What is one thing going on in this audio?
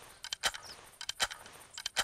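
A shotgun's pump action clacks as it is worked.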